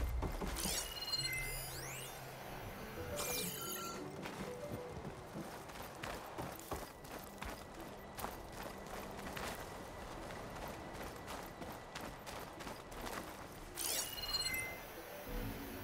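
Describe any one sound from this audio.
A bright electronic chime rings and fades.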